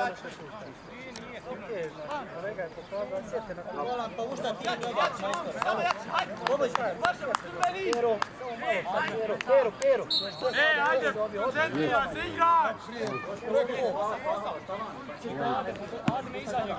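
Several men shout and call out across an open field.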